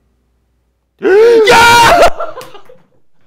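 A young man shouts loudly in excitement.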